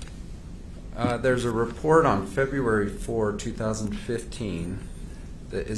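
An older man answers calmly into a microphone.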